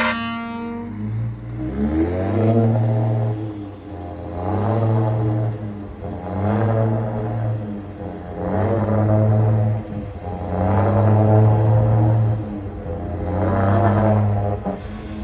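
A truck engine revs up again and again as it shifts gears and pulls away.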